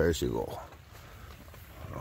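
Fingers press softly into loose soil.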